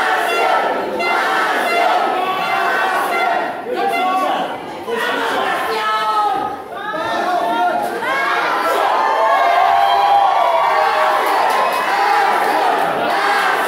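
A large crowd chants loudly in an echoing hall.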